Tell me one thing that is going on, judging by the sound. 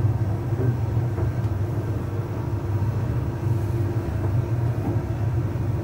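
Clothes tumble and thud softly inside a dryer drum.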